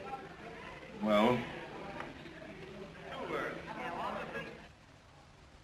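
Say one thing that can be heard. A second man answers briefly and quietly.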